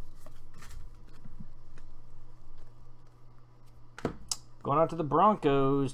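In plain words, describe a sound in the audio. Trading cards shuffle and rustle between fingers.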